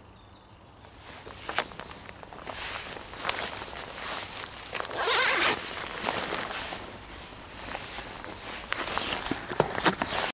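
Heavy clothing rustles and scrapes against a microphone.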